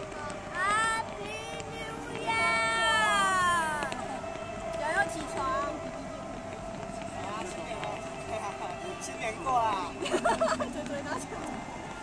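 Fireworks whistle with high falling shrieks.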